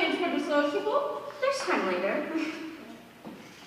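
A young woman sings with animation in a large echoing hall.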